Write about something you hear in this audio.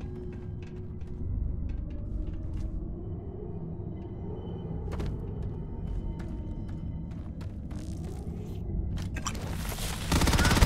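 Footsteps crunch on loose rock and gravel.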